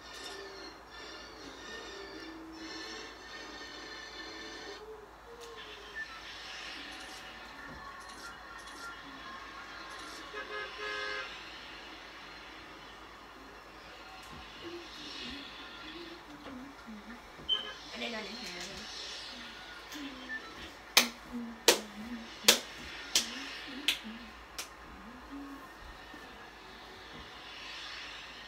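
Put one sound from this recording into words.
Video game sounds play from a television.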